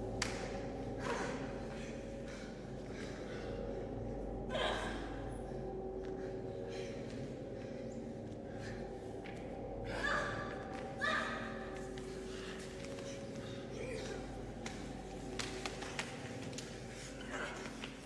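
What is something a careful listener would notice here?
Bodies and bare feet thump and slide on a stage floor.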